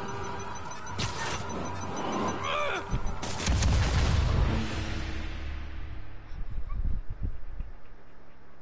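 Loud game sound effects whoosh and boom.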